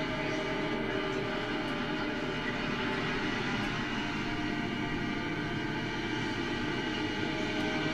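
A saxophone plays low, sustained notes.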